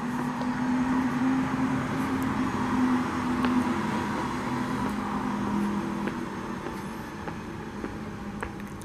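Footsteps tap on stone stairs.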